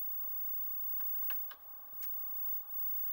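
A disk drive clicks and knocks in short bursts.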